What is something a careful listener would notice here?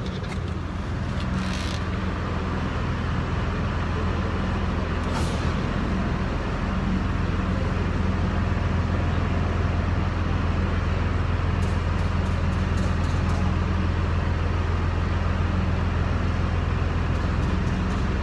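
An engine idles with a steady low rumble in a large echoing hall.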